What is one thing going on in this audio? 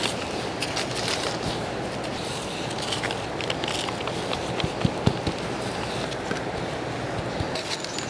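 Plastic wrap crinkles and rustles under a gloved hand.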